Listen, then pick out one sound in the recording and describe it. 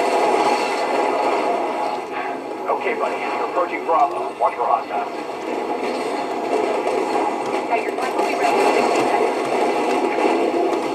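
Gunfire and explosions from a video game play through a small speaker.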